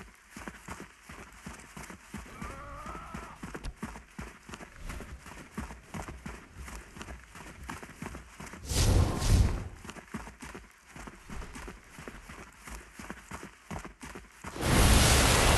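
Footsteps patter quickly on sand and dirt.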